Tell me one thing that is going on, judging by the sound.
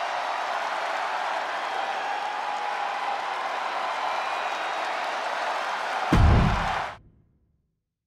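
A large crowd cheers and roars steadily in an arena.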